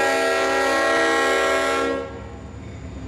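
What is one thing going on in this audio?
A diesel locomotive horn blares loudly.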